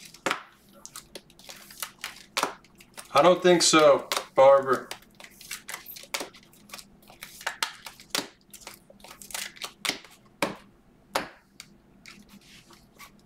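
Plastic card sleeves click and rustle as hands handle them.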